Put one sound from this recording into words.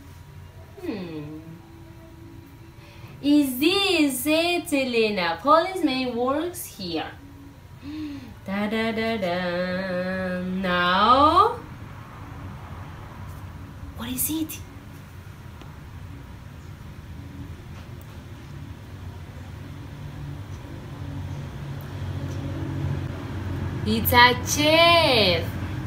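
A young woman speaks close by with animation, in a sing-song voice.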